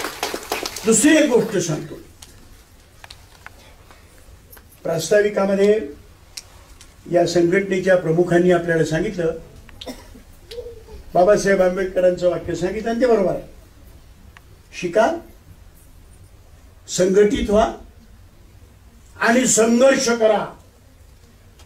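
An elderly man speaks forcefully into a microphone in bursts, with pauses between phrases.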